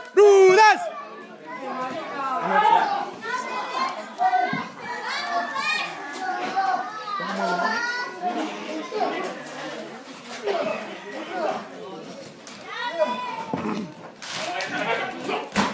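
A crowd of men and women chatters and calls out.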